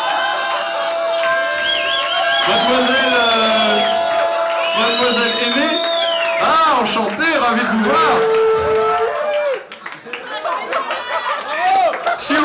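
A brass band plays ska live on stage.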